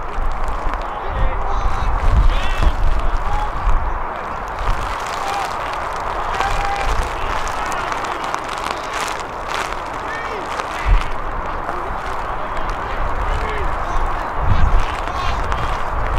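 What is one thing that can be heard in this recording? Young players shout to one another across an open field.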